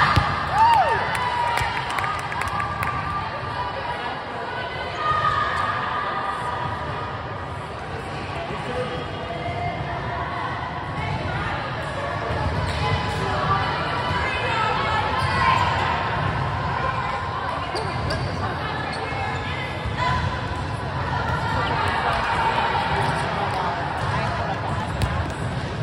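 A volleyball thuds as it is struck.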